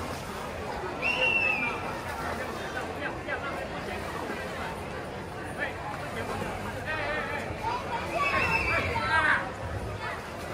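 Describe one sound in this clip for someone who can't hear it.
People shout and cheer in the distance, outdoors.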